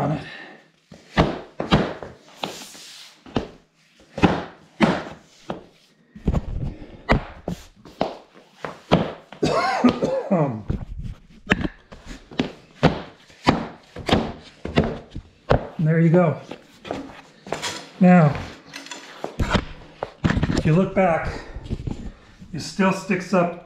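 Laminate floor planks knock sharply as they are tapped into place, over and over, close by.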